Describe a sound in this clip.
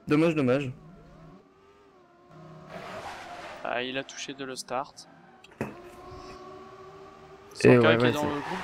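A racing car engine revs and whines as the car speeds along.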